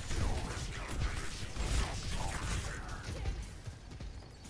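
Energy weapons fire and crackle in quick bursts, then quieten.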